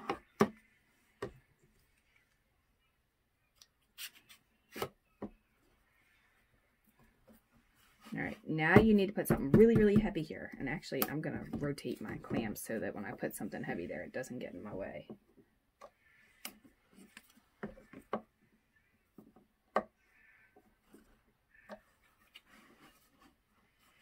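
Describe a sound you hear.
Metal clamps click and clatter against wood.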